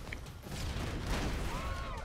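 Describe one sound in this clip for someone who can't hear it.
An explosion booms with a low rumble.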